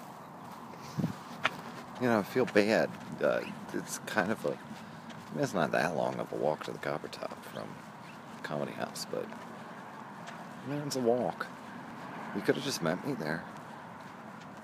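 A man talks close to a phone microphone in a loose, chatty way.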